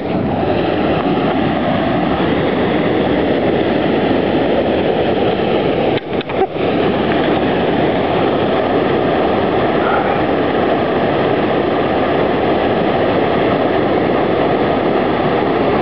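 A stream rushes and pours over a weir.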